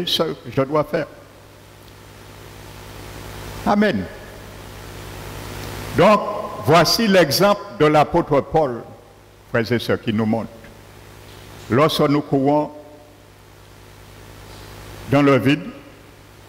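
An older man speaks with animation through a microphone and loudspeakers, with pauses between phrases.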